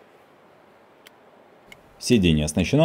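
A power seat switch clicks under a finger.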